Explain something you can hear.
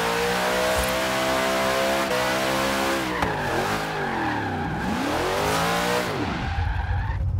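A car engine roars loudly, its pitch rising and falling as it revs.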